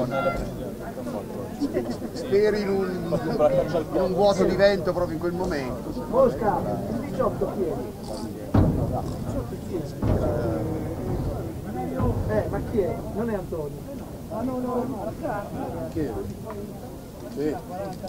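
Men talk and call out close by, outdoors.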